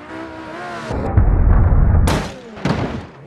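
A car slams into another car with a loud crash.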